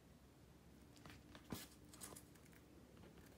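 Paper pages rustle as a hand moves them.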